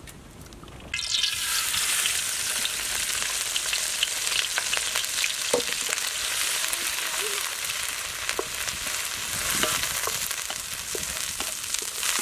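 Food sizzles loudly as it fries in a hot pan.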